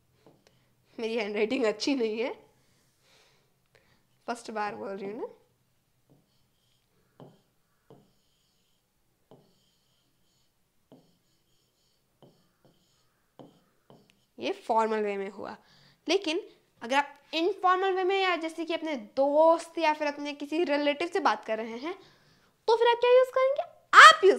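A young girl speaks clearly and with animation into a close microphone.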